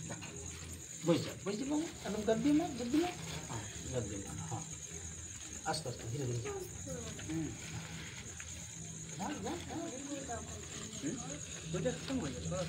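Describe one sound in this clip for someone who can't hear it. Several men and women murmur and talk quietly nearby.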